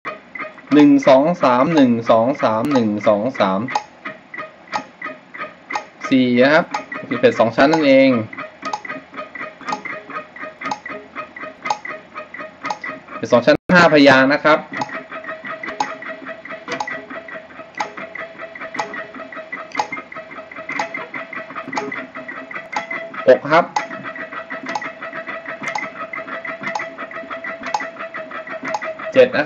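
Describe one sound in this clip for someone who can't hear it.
An electric guitar plays a quick, picked melody.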